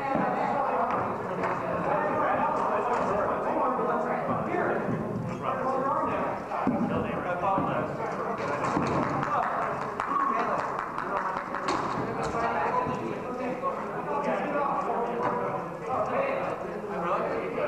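Several men talk with each other nearby in a large echoing hall.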